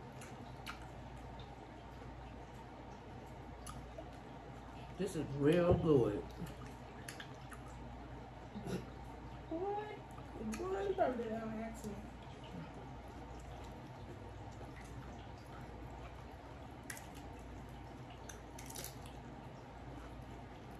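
Fingers rustle and crunch through a pile of tortilla chips.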